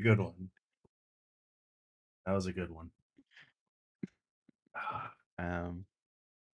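A man speaks into a microphone in short, animated bursts.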